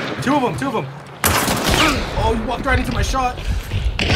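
A gunshot cracks loudly.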